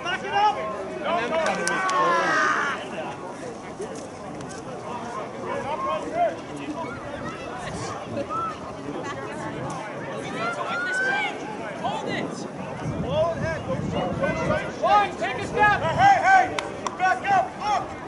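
Young women shout and call to each other outdoors, at a distance.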